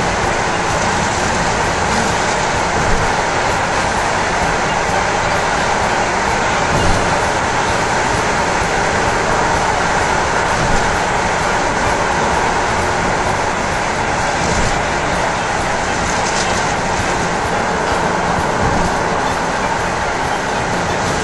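A car drives steadily through a tunnel with a loud, constant road roar.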